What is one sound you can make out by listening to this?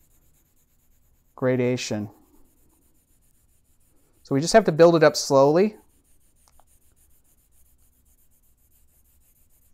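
A pencil shades on paper.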